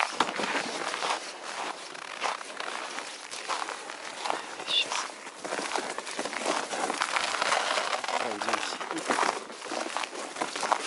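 Wind rustles through tall dry reeds outdoors.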